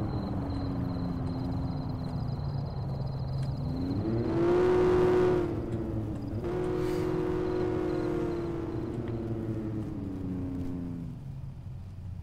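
A car engine revs up and down as the car speeds along a road.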